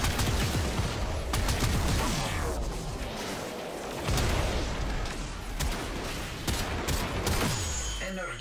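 Energy blasts whoosh and explode.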